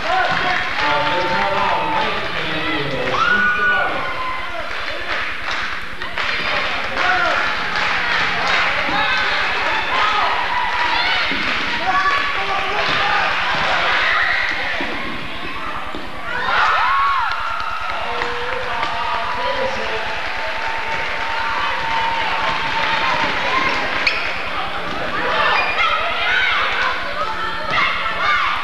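A crowd of spectators shouts and cheers in a large echoing gym.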